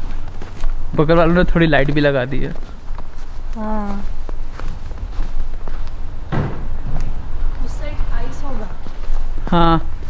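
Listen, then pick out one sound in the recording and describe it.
A young woman speaks nearby in short bursts.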